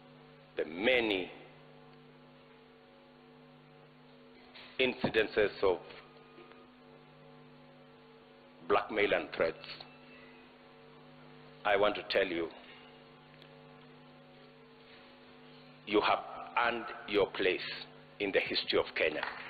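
A man speaks calmly into a microphone over loudspeakers, pausing between phrases.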